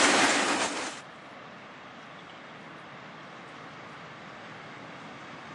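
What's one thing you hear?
An electric locomotive hums faintly as it approaches in the distance.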